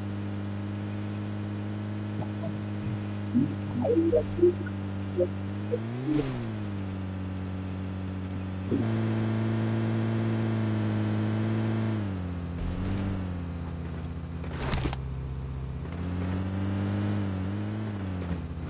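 A vehicle engine drones steadily, its pitch shifting slightly as it speeds up and slows down.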